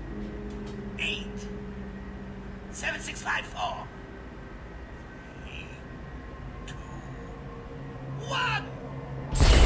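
A man speaks with animation through a television loudspeaker.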